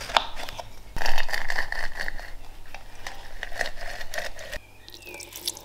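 A lemon is twisted and squeezed on a metal juicer, grinding and squelching.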